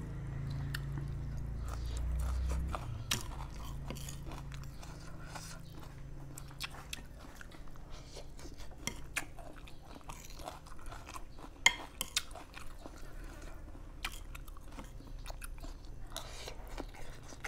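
A spoon and chopsticks clink against a plate.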